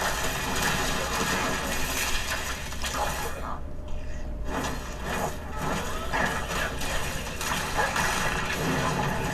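Magic blasts and impacts crash in a game battle.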